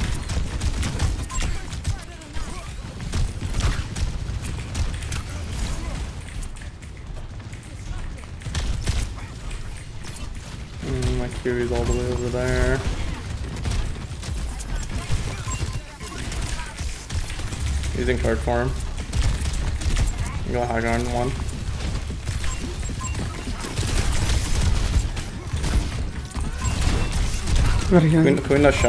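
A heavy energy weapon fires in rapid bursts.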